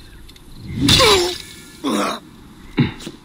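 Swords clash and thud in a close fight.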